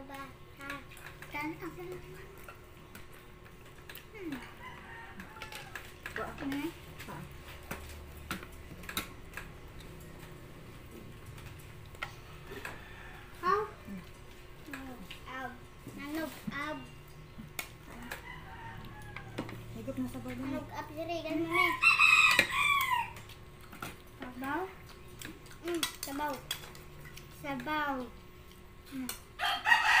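Children talk and chatter close by.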